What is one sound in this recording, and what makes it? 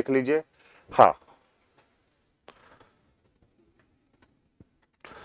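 A man speaks calmly in short bursts, close to a microphone.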